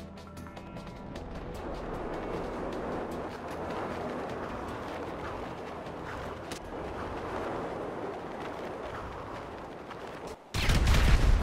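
Wind rushes steadily past a body in free fall.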